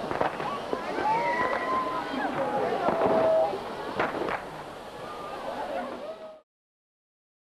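A firework fountain hisses and crackles as it sprays sparks.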